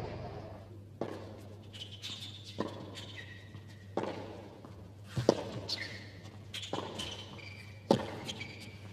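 Tennis rackets strike a ball back and forth in a rally.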